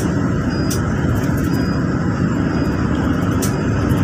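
A large truck rushes past close by.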